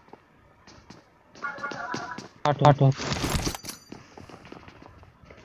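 Footsteps tread on a hard rooftop.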